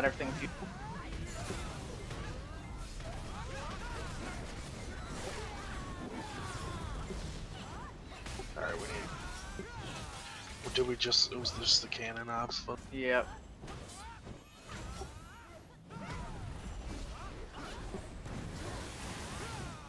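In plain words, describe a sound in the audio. Weapons clash and magic effects burst in a battle.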